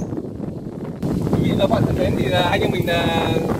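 A young man talks cheerfully close to a microphone.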